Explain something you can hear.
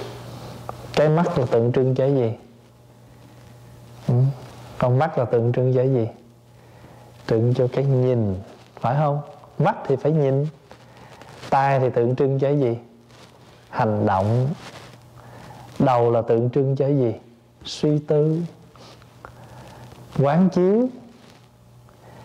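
A man speaks calmly and with animation into a microphone, pausing between phrases.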